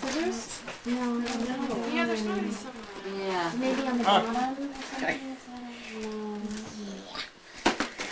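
A man wails and sobs loudly close by.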